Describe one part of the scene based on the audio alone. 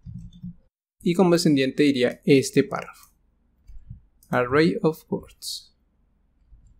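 A young man speaks calmly and close into a microphone.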